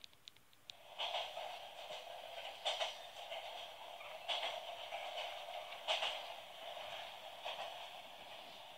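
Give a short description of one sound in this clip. Tinny game music plays through a small handheld speaker.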